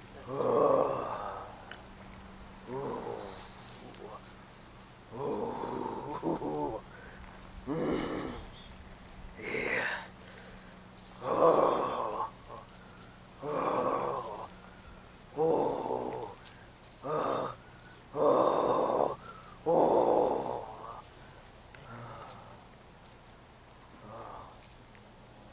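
A young woman speaks in short, breathless bursts nearby.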